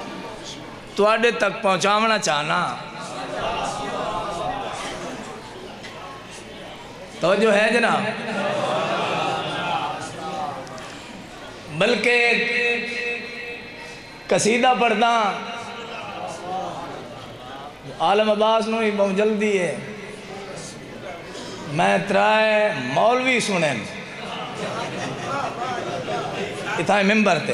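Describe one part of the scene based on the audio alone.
A man chants loudly and with feeling into a microphone, in short bursts over a loudspeaker.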